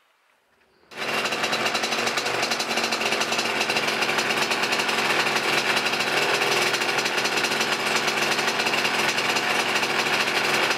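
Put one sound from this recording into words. A scooter engine idles loudly and steadily close by.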